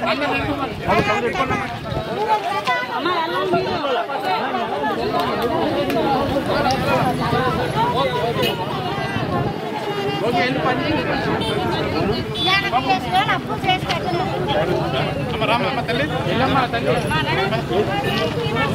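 A crowd of men and women talk and argue loudly at once outdoors.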